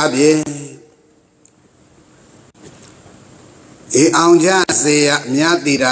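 An elderly man reads out calmly through a microphone, with a pause.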